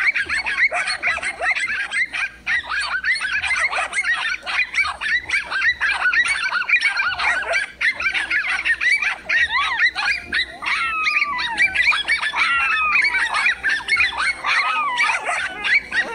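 Dogs bark excitedly close by.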